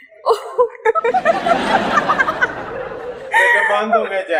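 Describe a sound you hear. An audience applauds and laughs in a large room.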